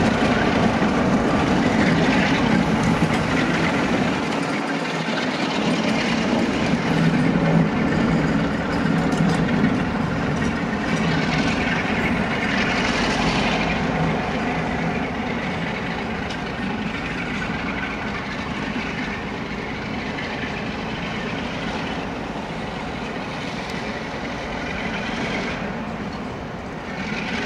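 Train wheels clatter and squeal on the rails, slowly fading.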